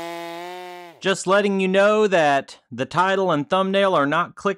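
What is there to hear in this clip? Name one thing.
A chainsaw engine revs up and down in short bursts.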